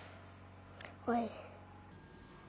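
A child exclaims in surprise nearby.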